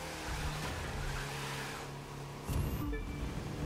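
Car tyres screech on wet tarmac.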